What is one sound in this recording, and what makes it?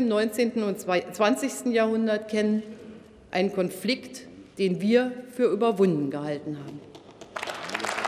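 A middle-aged woman speaks calmly through a microphone in a large hall.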